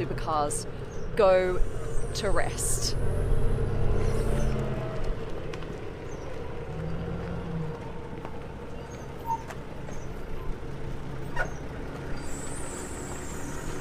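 A forklift engine rumbles steadily.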